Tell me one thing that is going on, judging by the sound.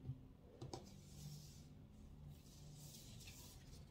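Cards slide and shuffle against each other.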